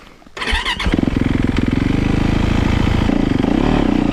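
A four-stroke single-cylinder dirt bike engine idles.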